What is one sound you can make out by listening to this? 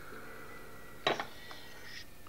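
A small bottle clinks as it is set down on a table.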